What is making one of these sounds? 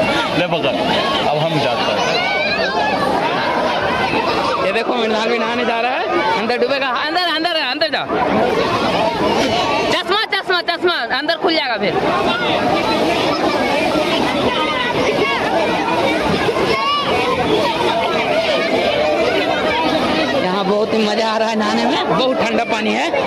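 A river rushes and splashes around people wading in it.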